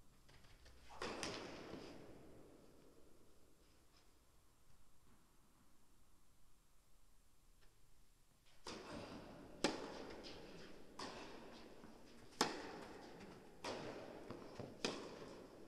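A tennis ball is struck hard with a racket, with a short echo in a large hall.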